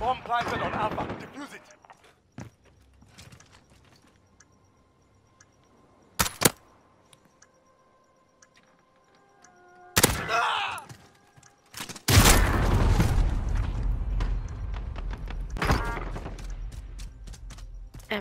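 A rifle fires sharp shots at close range.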